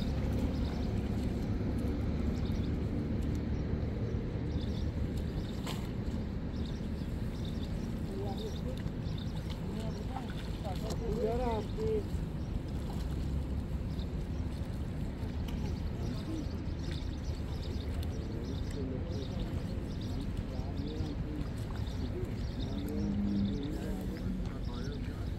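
Hands splash softly in shallow water.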